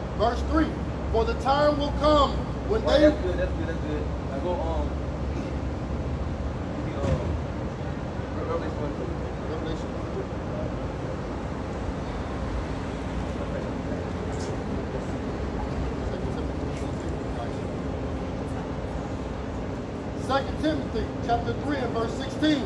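Traffic hums steadily in the background.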